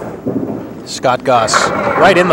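Pins crash and clatter as a bowling ball strikes them.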